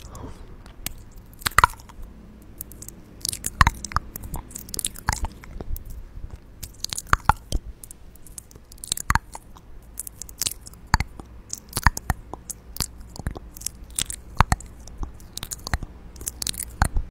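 A young woman makes soft mouth sounds close to a microphone.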